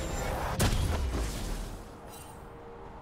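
A magic spell whooshes loudly.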